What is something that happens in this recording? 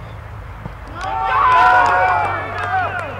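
Young men shout and cheer excitedly outdoors.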